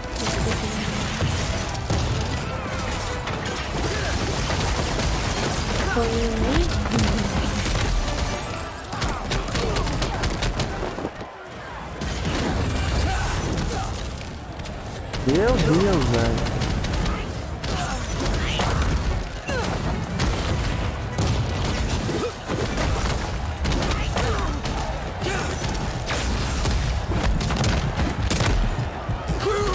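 Game spells crackle, blast and explode in quick bursts.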